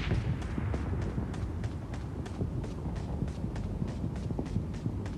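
Quick footsteps thud steadily as a game character runs.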